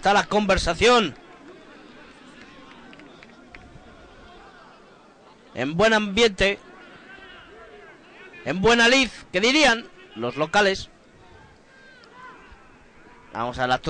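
A crowd of spectators murmurs in the distance outdoors.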